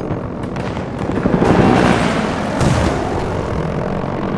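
A helicopter's rotor thumps and whirs overhead.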